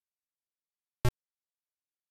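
A single short, buzzy electronic beep sounds from a retro computer game.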